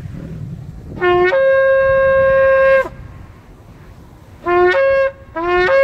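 A man blows a horn outdoors in long, steady notes.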